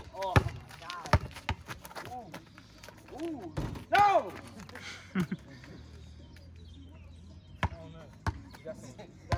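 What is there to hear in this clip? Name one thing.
A basketball bounces sharply on pavement outdoors.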